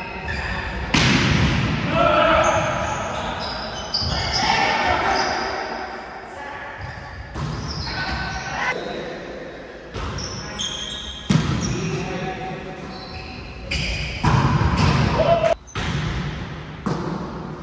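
A volleyball is struck with sharp slaps that echo around a large hall.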